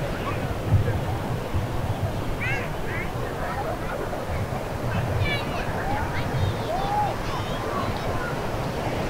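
Wind blows in gusts outdoors.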